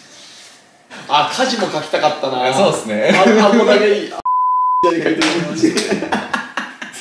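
Two young men laugh loudly.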